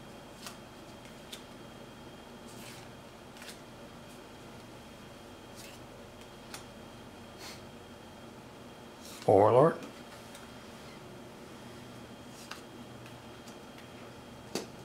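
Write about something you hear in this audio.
Playing cards slide and tap softly as they are shuffled through by hand.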